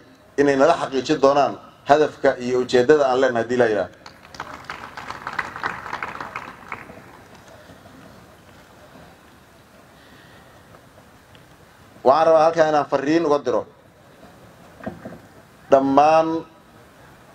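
A man speaks into a microphone in a steady, formal voice, in short bursts with pauses.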